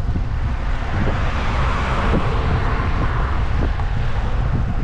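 A car passes close by on the road with a rising and fading rush of tyres.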